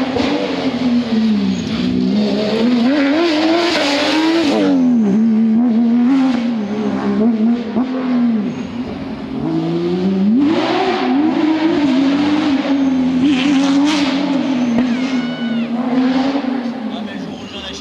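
A racing car engine roars and revs hard as the car speeds past.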